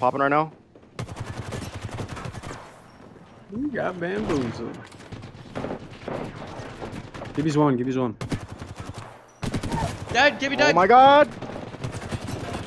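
Rapid gunfire bursts out in quick volleys.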